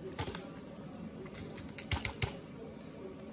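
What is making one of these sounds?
A plastic candy wrapper crinkles and tears.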